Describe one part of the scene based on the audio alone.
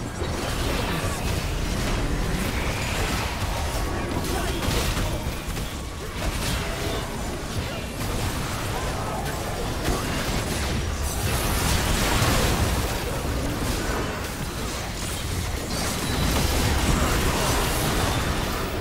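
Spell blasts and impacts crackle and boom in a game's fight.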